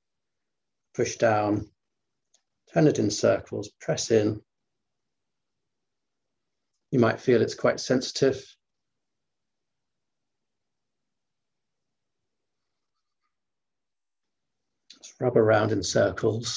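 A middle-aged man speaks calmly in short bursts with long pauses, heard through an online call.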